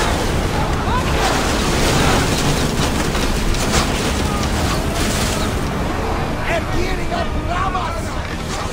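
Men shout on a ship's deck.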